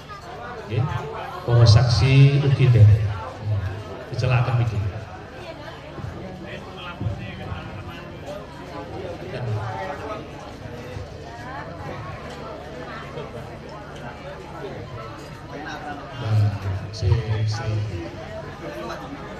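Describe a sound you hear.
A middle-aged man speaks formally into a microphone, heard through a loudspeaker.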